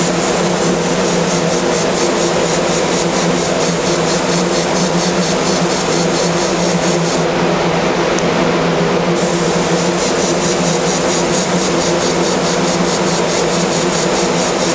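A power tool whirs loudly and steadily with a fast, rhythmic pulse.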